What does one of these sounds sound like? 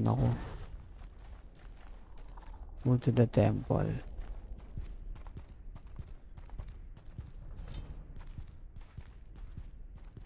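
A mount's hooves thud rhythmically on the ground.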